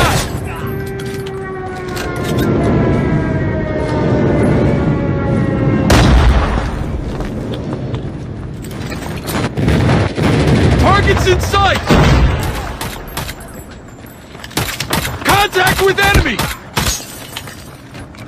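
A weapon clicks and clacks as it is reloaded.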